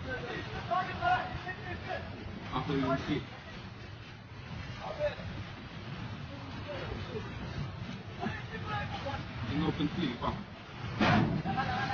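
Several men call out and talk nearby.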